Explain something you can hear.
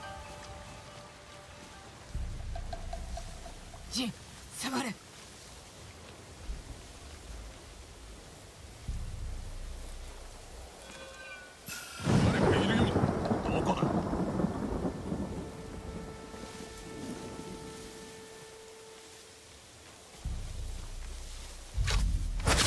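Wind gusts through tall grass.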